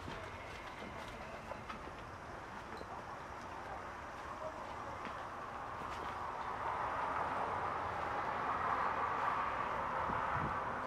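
A man speaks calmly into a microphone outdoors.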